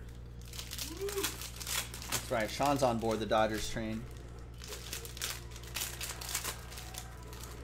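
Foil wrappers crinkle and rustle as packs are torn open.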